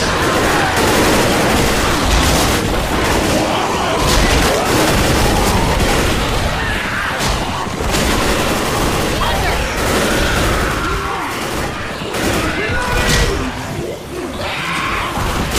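Zombies snarl and groan close by.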